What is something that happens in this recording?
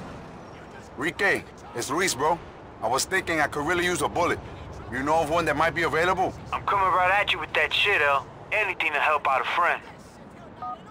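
A man talks on a phone with animation.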